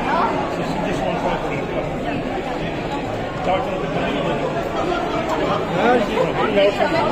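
A crowd chatters loudly all around, indoors.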